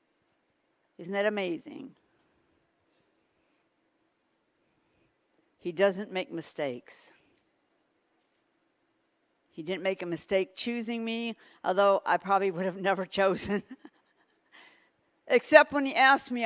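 An elderly woman speaks expressively into a microphone, with pauses between phrases.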